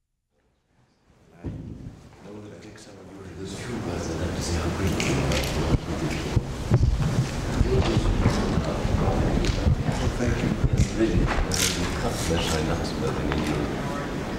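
Elderly men talk nearby.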